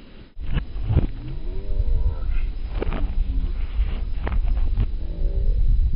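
Footsteps thud on a rubber mat.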